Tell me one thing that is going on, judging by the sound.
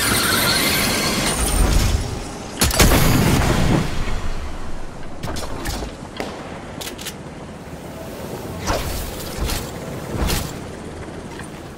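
A game character's weapon swings with a whoosh.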